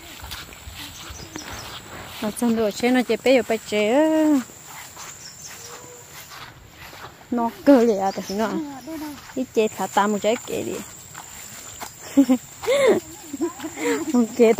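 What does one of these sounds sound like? Footsteps swish through wet grass.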